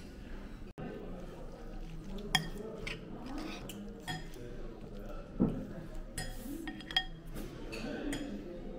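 Sticky food squelches as it is stirred.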